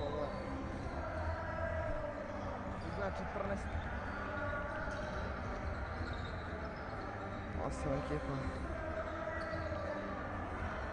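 Basketball sneakers squeak on a hardwood court in a large echoing hall.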